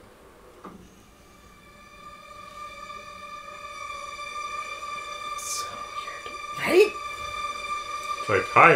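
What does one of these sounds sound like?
Orchestral music swells through a loudspeaker.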